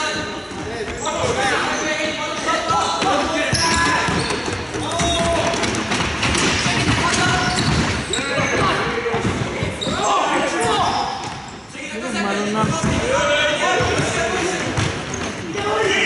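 Young players shout to each other across a large echoing hall.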